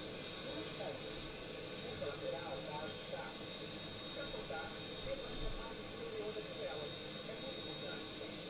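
A jet airliner's engines hum and whine steadily as it taxis.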